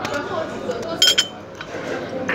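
A porcelain teacup clinks against its saucer.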